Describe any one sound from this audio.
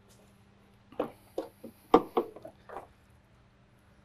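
A car hood clicks and thumps as it is lifted open.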